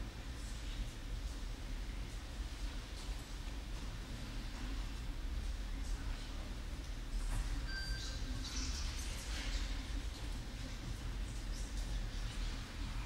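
Distant voices murmur softly in a large echoing hall.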